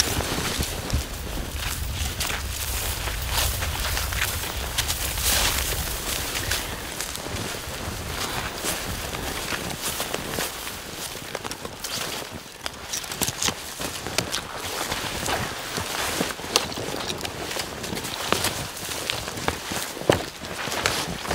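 Footsteps crunch through dry grass and snow.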